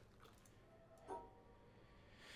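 A soft electronic chime sounds.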